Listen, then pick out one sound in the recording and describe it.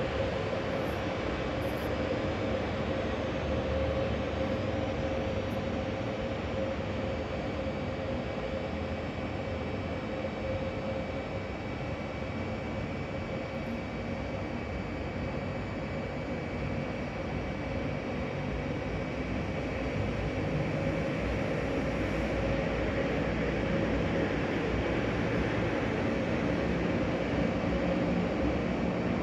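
A train engine hums steadily nearby in a large echoing hall.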